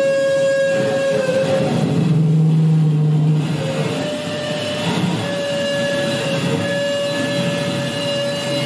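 An arcade machine plays steady electronic tones.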